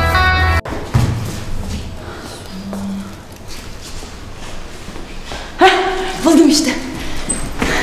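Footsteps walk across a hard floor in an echoing hallway.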